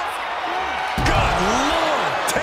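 A body slams heavily onto a hard floor.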